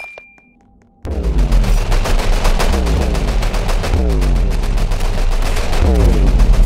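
Rapid shots fire nonstop with a deep pounding rumble.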